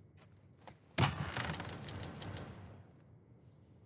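A wooden crate lid creaks open with a loud clatter.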